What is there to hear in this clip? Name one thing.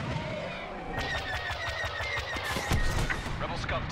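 Laser cannons fire in a rapid burst of sharp shots.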